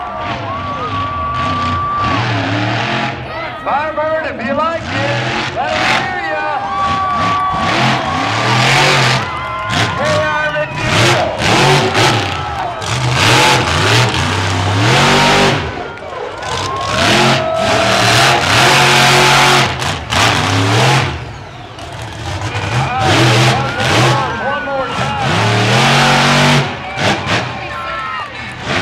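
A crowd cheers.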